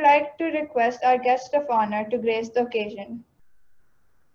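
A young girl speaks clearly into a microphone.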